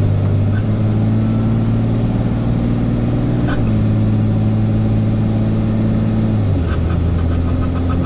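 A truck engine drones steadily, shifting gears as it drives.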